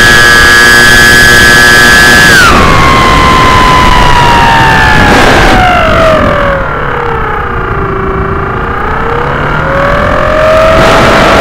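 A small aircraft motor whines loudly close by, its pitch dropping, then slowly rising again.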